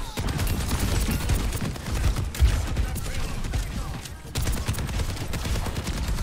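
A rapid-fire energy gun shoots in quick bursts, with sharp crackling blasts.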